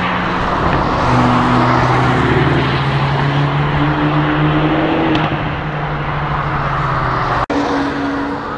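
Two sports car engines roar and rev as the cars speed past.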